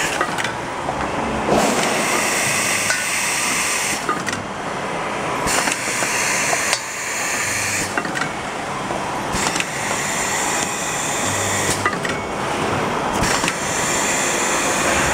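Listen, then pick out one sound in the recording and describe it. Metal parts clank and hiss as a machine cycles.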